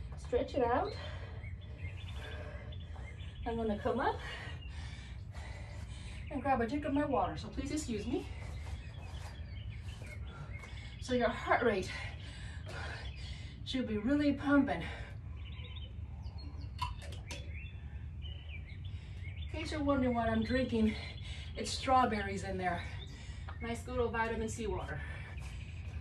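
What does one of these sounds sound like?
A woman speaks calmly and warmly in short bursts, close by.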